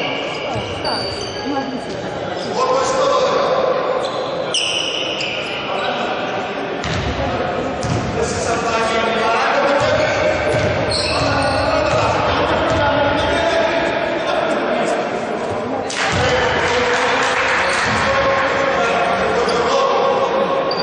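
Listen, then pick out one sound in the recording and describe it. Players shout and call out to each other in a large echoing gym.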